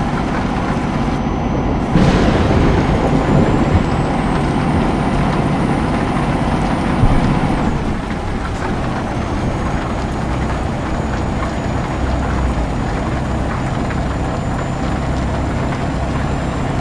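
Rain patters on a windshield.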